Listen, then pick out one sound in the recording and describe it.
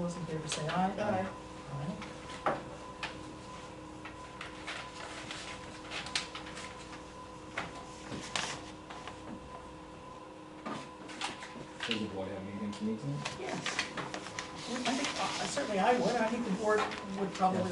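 A woman speaks calmly in a room with slight echo.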